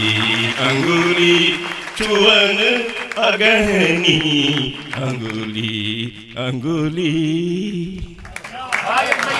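A man recites with animation into a microphone.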